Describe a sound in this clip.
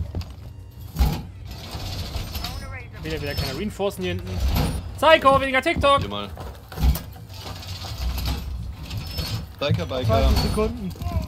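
Heavy metal panels clank loudly into place.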